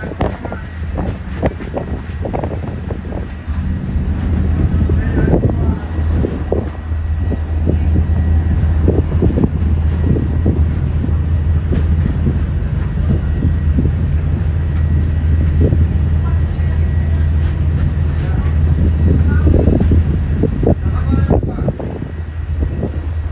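A boat engine rumbles low and steady nearby.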